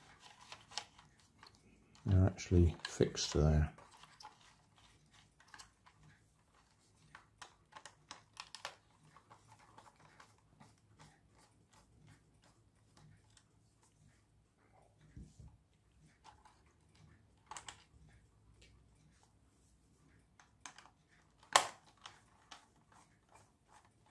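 Wires and plastic parts click and rattle as fingers handle them.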